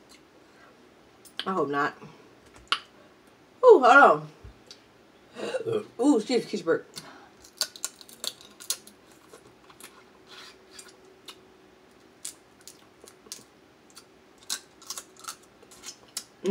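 Crab shells crack and snap between fingers.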